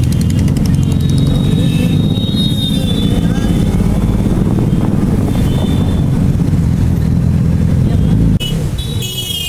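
A motorcycle engine rumbles loudly on the move.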